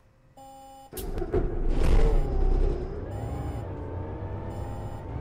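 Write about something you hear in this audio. A diesel city bus engine revs as the bus pulls away.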